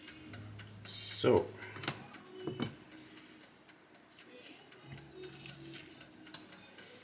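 A pancake sizzles softly in a hot pan.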